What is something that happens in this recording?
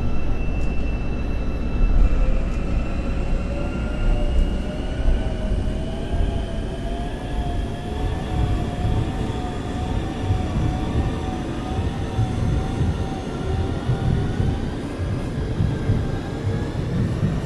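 A train's motor whines, slowly rising in pitch.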